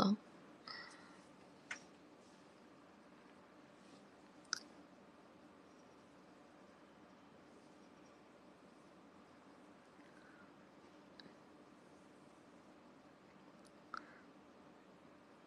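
A young woman murmurs softly close to a microphone.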